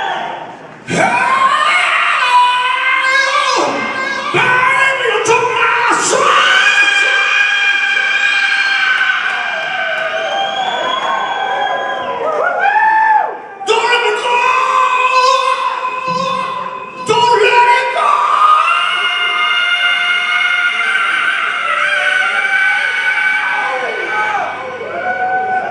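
A woman sings loudly through a microphone over a live band.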